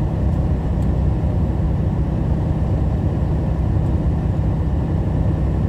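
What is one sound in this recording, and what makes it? A truck's engine rumbles steadily from inside the cab.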